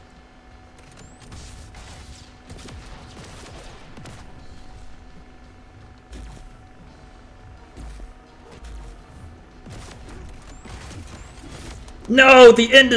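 Punches and blows land with dull thuds in a fighting game.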